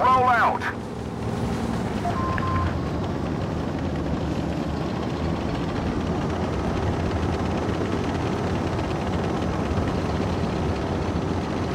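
A heavy tank engine rumbles as the tank moves off.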